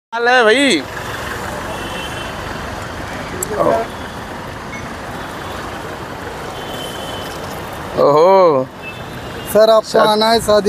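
Traffic hums steadily on a road nearby.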